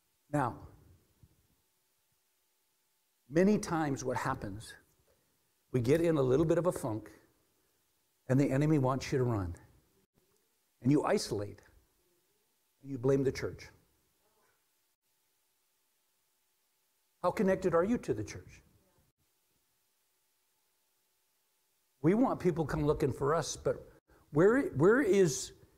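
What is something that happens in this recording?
A middle-aged man speaks with animation through a microphone, pausing between phrases, in an echoing room.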